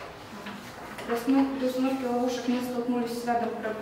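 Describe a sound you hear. A young woman speaks calmly, reading out.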